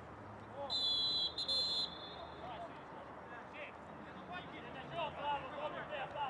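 Footballers shout to each other across an open pitch.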